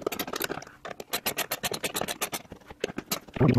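A small screwdriver turns a screw in by hand.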